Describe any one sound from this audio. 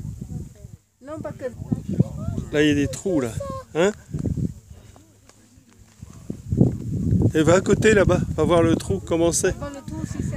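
A young child talks and calls out excitedly nearby.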